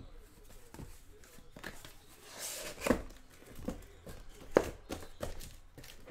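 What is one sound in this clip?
A cardboard box scrapes and thumps as it is turned over.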